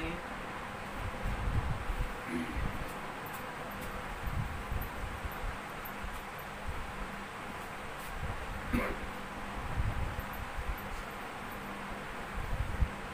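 A cloth rubs and wipes across a whiteboard.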